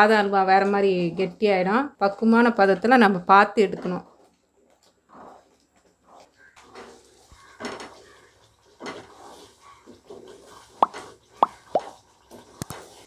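A wooden spatula scrapes and stirs a thick mixture in a pan.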